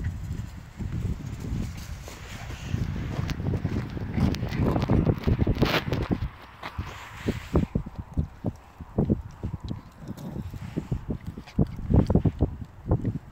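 Footsteps crunch on gravel close by.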